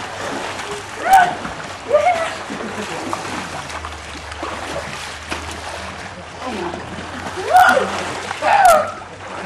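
Young people shout and call out to each other.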